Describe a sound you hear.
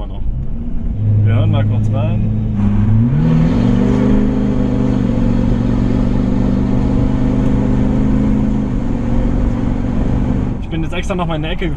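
A truck engine revs hard and rises in pitch.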